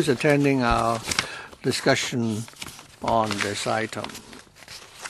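A man speaks briefly through a microphone in a large echoing hall.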